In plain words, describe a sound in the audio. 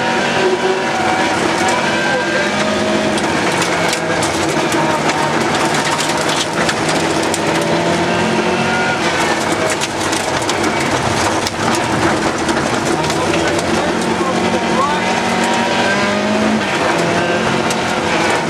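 A rally car engine roars loudly from inside the cabin, revving up and down.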